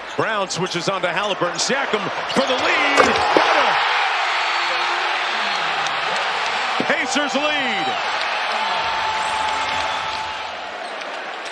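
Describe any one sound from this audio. A large crowd cheers and roars loudly in a big echoing arena.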